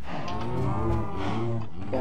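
Cows moo.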